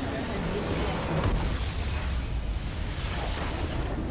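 A large video game structure explodes with a deep boom.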